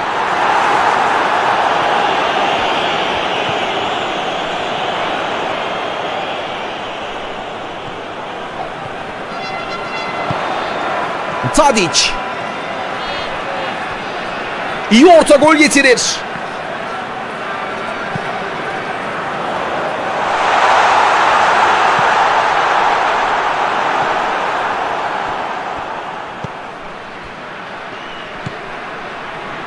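A large stadium crowd roars and cheers steadily, swelling at times.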